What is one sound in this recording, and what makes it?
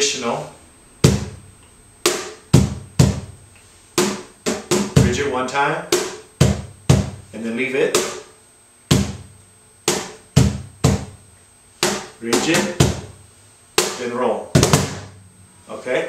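A man slaps out a beat on a wooden box drum, with deep thumps and sharp snaps.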